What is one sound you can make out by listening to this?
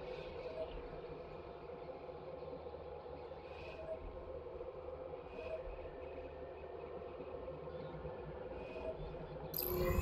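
Soft electronic blips chime now and then.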